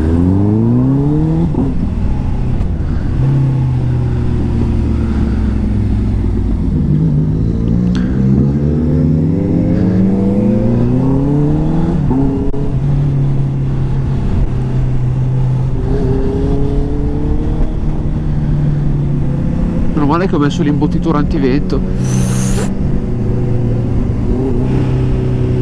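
A motorcycle engine revs up and down close by as it shifts gears.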